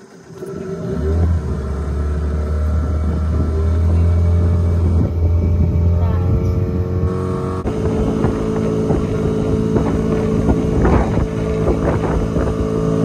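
A boat's motor hums steadily, growing louder as it speeds up.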